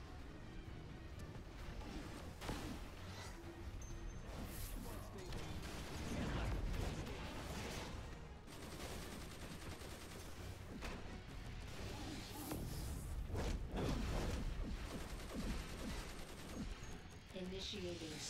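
Energy blasts crackle and boom in a fight.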